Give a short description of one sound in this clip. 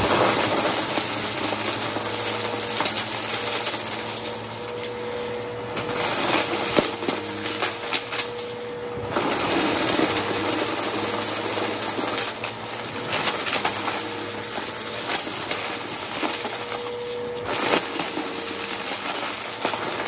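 A vacuum cleaner roars steadily up close.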